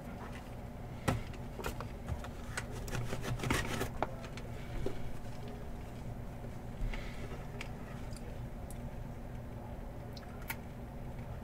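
A soft cloth pouch rustles and scrapes in hands.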